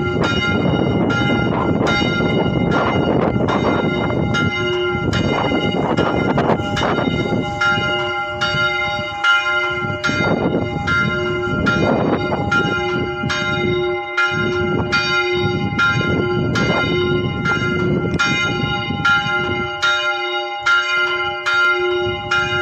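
A church bell rings steadily overhead, each stroke ringing on.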